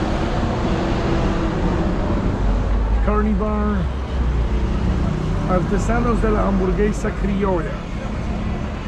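Traffic rumbles steadily along a nearby city street.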